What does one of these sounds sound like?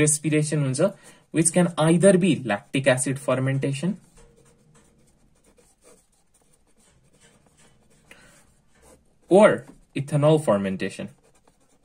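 A marker squeaks on paper as it writes.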